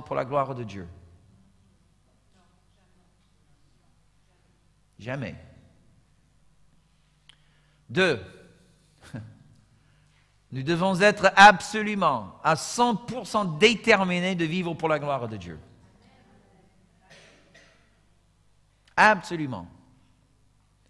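A middle-aged man speaks earnestly into a microphone, with long pauses.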